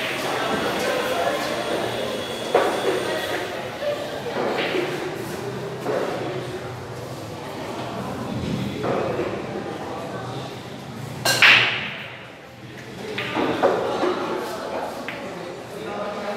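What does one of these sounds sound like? Men chatter in the background of a large room.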